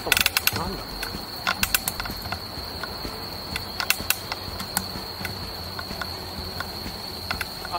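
A bicycle rolls over a paved road, rattling over bumps.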